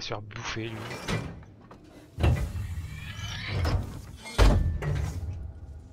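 A heavy metal lever clanks and thuds.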